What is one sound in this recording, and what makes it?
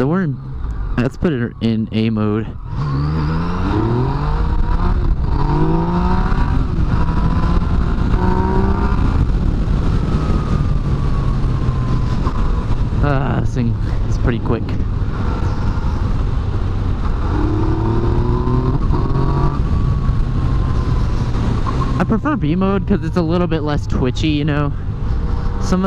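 A motorcycle engine revs up and down as gears shift.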